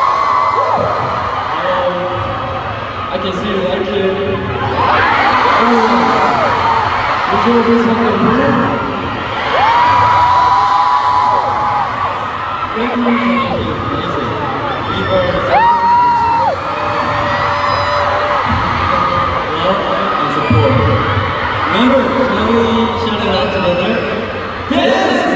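A young man speaks calmly through a microphone over loudspeakers in a large echoing arena.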